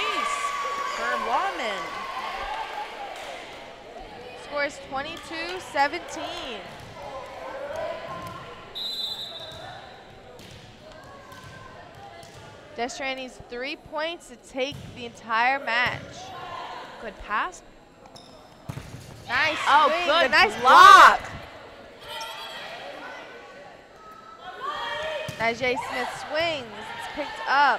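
Spectators cheer and shout loudly in a large echoing gym.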